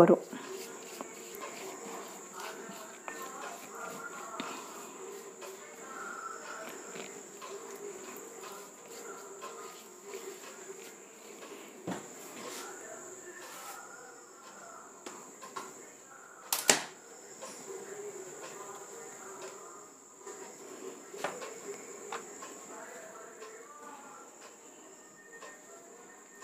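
Hands softly pat and press dough on a board.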